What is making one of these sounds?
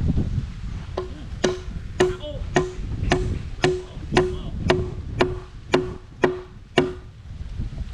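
A hammer drives a nail into wood with ringing blows.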